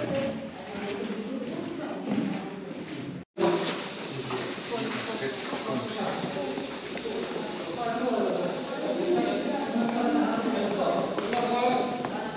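A group of people chat nearby, with a light echo.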